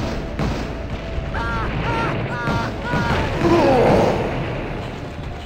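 Fireballs roar and burst with fiery explosions.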